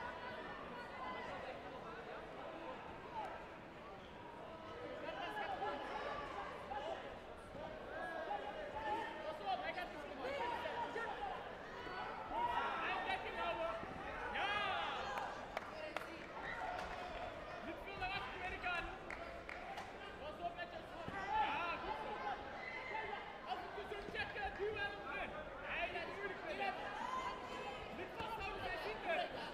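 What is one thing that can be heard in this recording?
A crowd of men and women chatter and call out in a large echoing hall.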